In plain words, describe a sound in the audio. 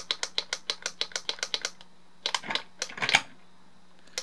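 A toy remote control clicks rapidly as its buttons are pressed.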